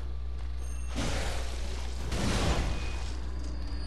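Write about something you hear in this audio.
A blade slashes and strikes flesh with heavy thuds.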